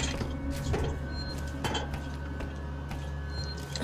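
Hands clank against metal ladder rungs while climbing.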